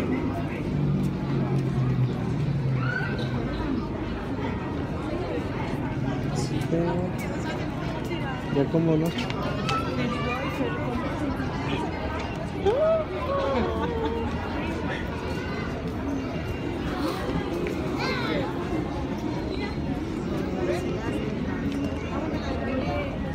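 Footsteps shuffle on pavement nearby.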